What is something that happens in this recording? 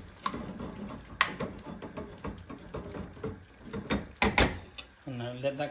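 A thick sauce simmers and bubbles in a pan.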